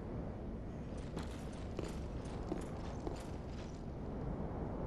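Armoured footsteps clink on stone.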